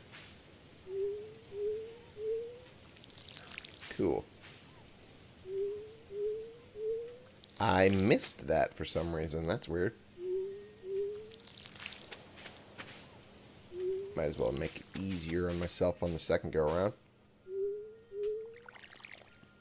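Short rising chimes sound as a watering can sprinkles crops, in quick groups of two or three.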